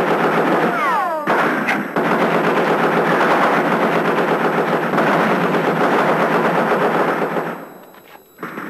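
Machine guns fire in rapid bursts outdoors.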